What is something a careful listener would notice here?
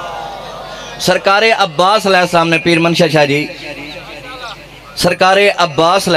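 A man speaks forcefully through a microphone and loudspeakers, with echo.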